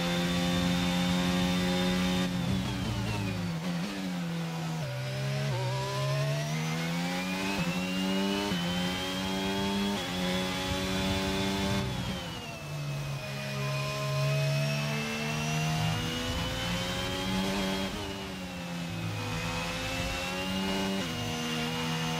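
A racing car engine screams at high revs, dropping sharply as the driver brakes and rising again through the gears.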